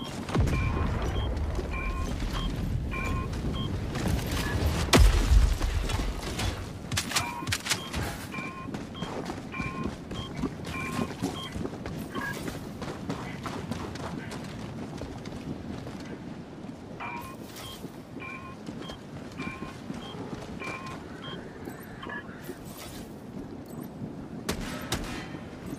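Heavy footsteps crunch on the ground.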